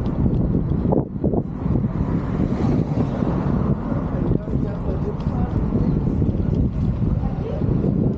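Bicycle tyres roll over rough pavement.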